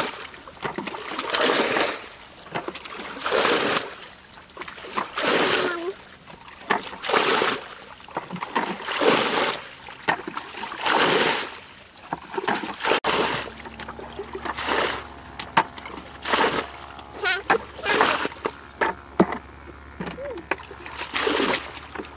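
Water splashes and sloshes in bursts.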